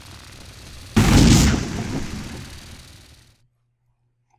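A game's teleport effect whooshes and fades.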